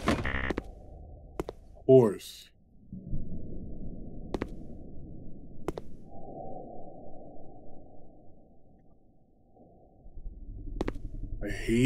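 A man speaks into a close microphone with animation.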